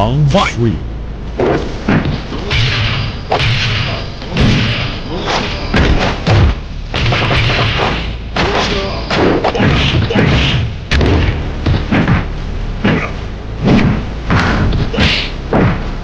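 Fighters grunt and shout as they attack.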